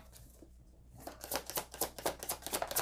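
A deck of cards is shuffled by hand with quick flicking riffles.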